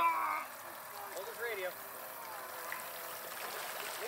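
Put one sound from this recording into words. Water splashes as a man lifts a model boat out.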